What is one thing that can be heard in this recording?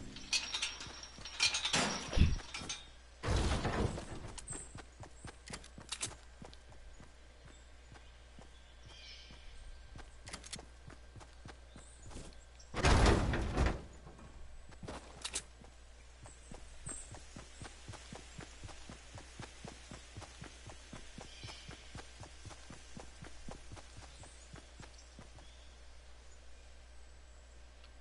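Footsteps run quickly across hard pavement.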